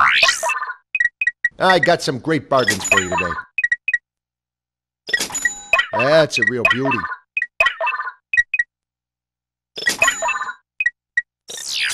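Short electronic menu beeps sound in quick succession.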